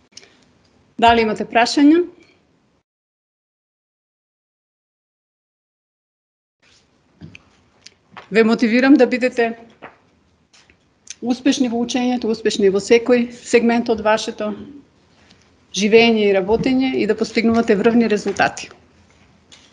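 A woman speaks calmly through an online call, with long pauses.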